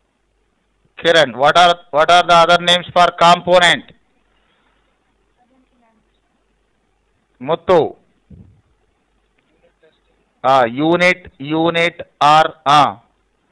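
A man speaks calmly into a close microphone, explaining in short phrases with pauses.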